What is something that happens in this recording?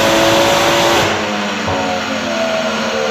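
A car engine suddenly drops off and winds down.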